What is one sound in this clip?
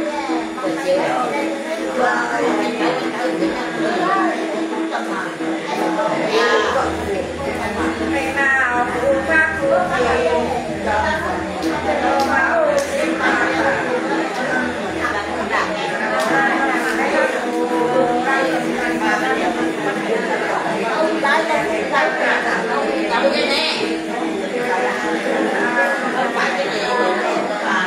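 An elderly woman sings in a wavering, chanting voice close by.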